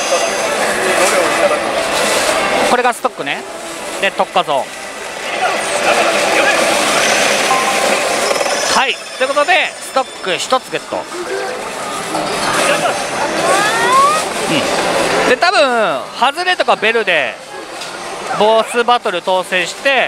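A slot machine plays loud music and sound effects.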